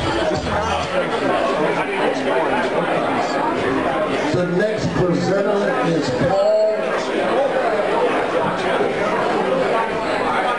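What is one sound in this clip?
A man announces loudly over a microphone in a large echoing hall.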